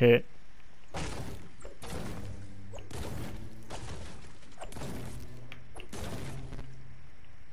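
A pickaxe chops into a tree trunk with repeated hollow thuds.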